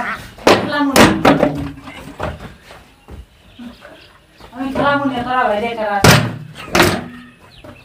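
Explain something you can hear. A plastic bottle smacks against a body.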